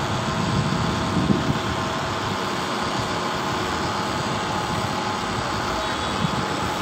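A bus engine idles nearby with a low, steady rumble.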